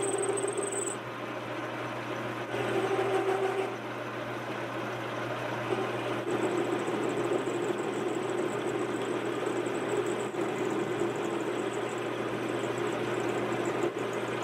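A lathe spindle hums steadily.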